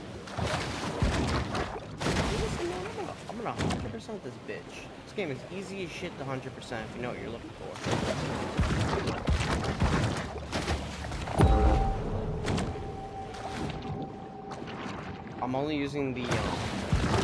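Water splashes as a fish swims.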